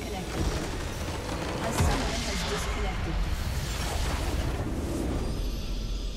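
A crumbling structure blasts apart with a loud rumble.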